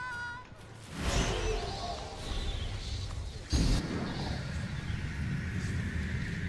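Wings flap and whoosh in rushing flight.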